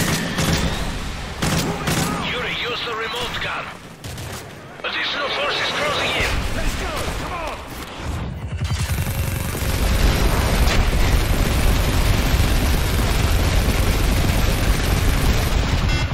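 Heavy cannon fire thuds in rapid bursts.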